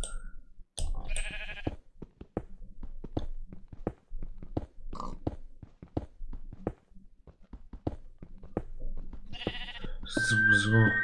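A pickaxe taps quickly and repeatedly on stone.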